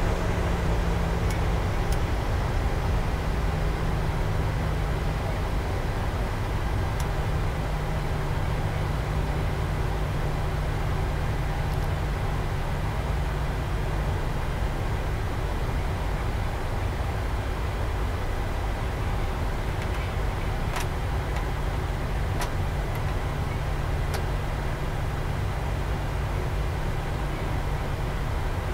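Jet engines hum low and steady while an airliner taxis.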